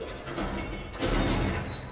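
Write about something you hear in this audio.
A hand thumps against a metal door.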